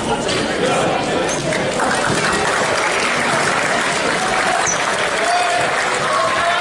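A crowd applauds and cheers in a large echoing gym.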